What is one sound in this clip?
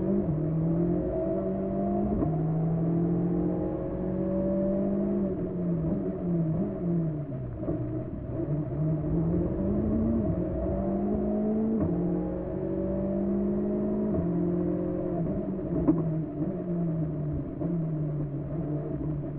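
A rally car engine roars loudly from inside the cabin, revving up and dropping with each gear change.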